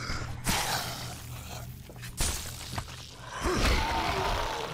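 A blade strikes flesh with heavy thuds.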